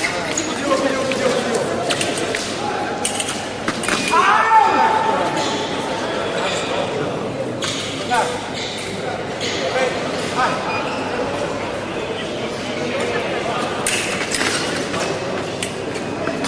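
Fencing shoes squeak and thud on the piste.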